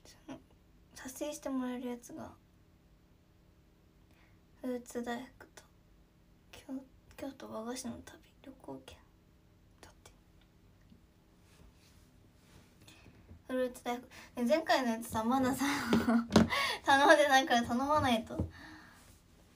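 A young woman speaks softly and casually, close to a microphone.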